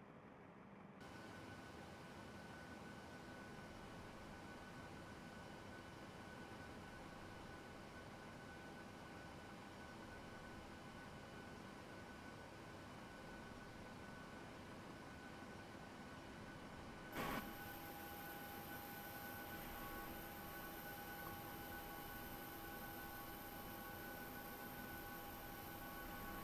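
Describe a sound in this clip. A jet engine hums steadily at idle.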